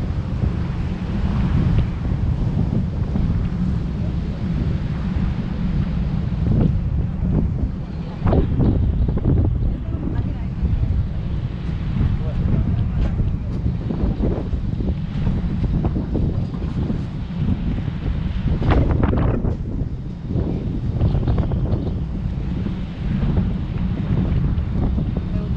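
Water splashes against the hull of a moving boat.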